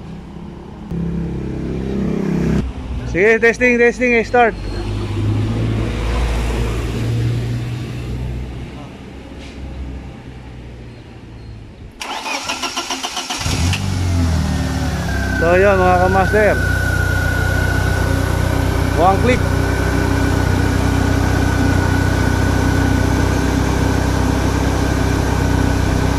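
A car engine idles with a steady low hum close by.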